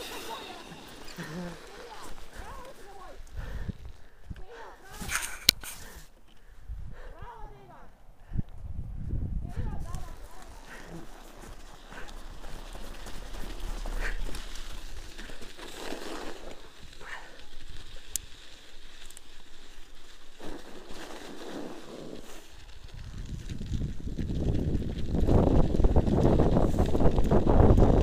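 Wind rushes past close by, loudest toward the end.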